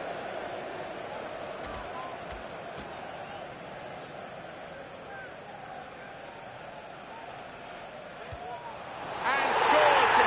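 A stadium crowd murmurs steadily in the background.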